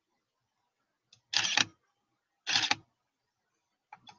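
A hand clicks plastic toy bricks into place.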